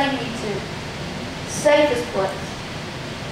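A woman speaks into a microphone, heard through loudspeakers in a large echoing room.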